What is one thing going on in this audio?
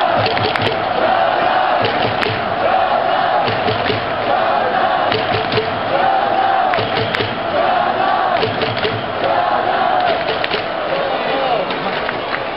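Many fans clap their hands in rhythm.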